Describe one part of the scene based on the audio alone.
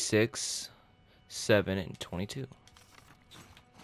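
Paper rustles as it is handled and folded.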